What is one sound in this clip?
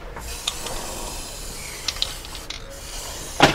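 An aerosol can sprays with a steady hiss.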